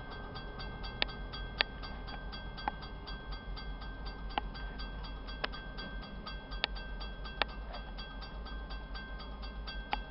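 Train wheels clack sharply over rail joints.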